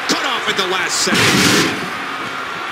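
A heavy body slams down with a loud thud.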